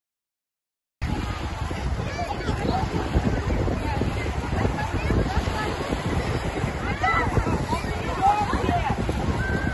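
A crowd of people chatters on a beach.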